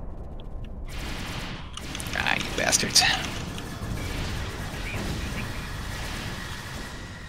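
Energy weapons fire in rapid, crackling zaps.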